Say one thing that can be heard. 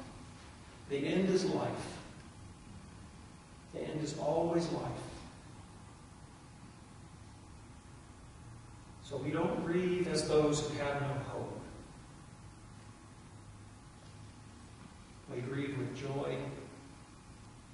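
A middle-aged man speaks calmly in short phrases with pauses, heard in a large echoing room.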